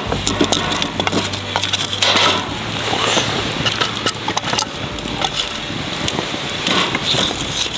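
Wood knocks against a metal grill as logs are placed.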